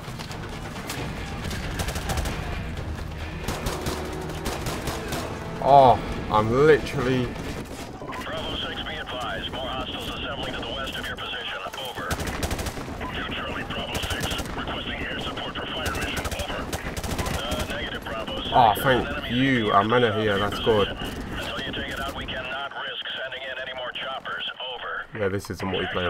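Rapid gunfire cracks in bursts.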